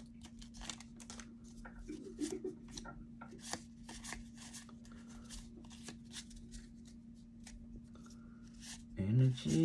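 Trading cards slide and shuffle against each other.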